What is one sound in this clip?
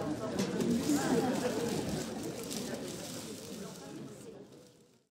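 A crowd of adults chatters and murmurs close by.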